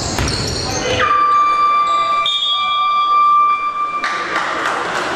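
A referee blows a long, shrill whistle.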